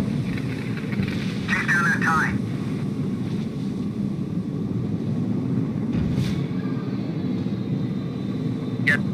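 A spacecraft's engines roar steadily.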